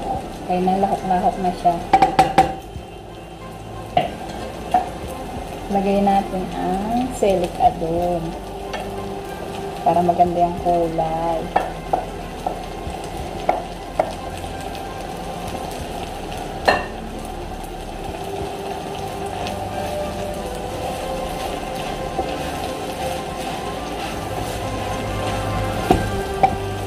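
A wooden spatula scrapes and knocks against a metal pan.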